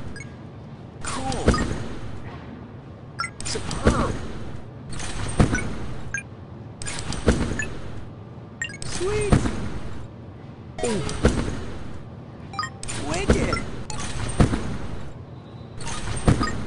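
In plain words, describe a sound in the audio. A trampoline thumps and springs with each bounce, about every two seconds.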